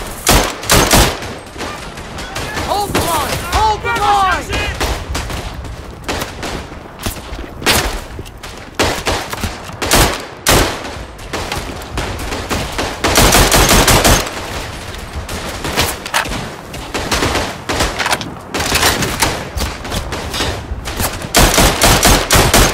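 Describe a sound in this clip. Rifle shots fire in quick bursts, close by.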